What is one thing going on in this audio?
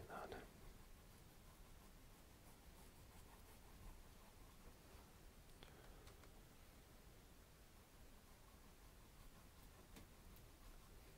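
A brush strokes softly across a canvas.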